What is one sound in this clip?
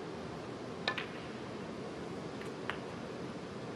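Snooker balls knock against each other.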